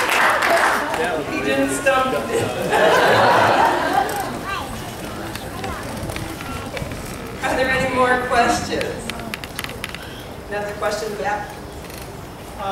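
A middle-aged woman speaks through a microphone, heard over a loudspeaker.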